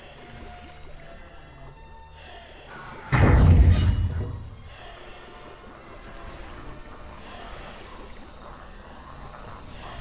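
Water gurgles and bubbles underwater, muffled and steady.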